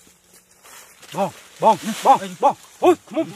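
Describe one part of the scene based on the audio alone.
A young man shouts loudly and strains close by.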